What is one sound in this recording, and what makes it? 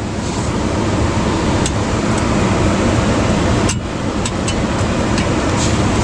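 The piezo igniter of a portable gas stove clicks.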